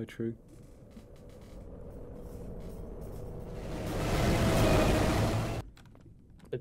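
A heavy metal door slides open with a rising rumble.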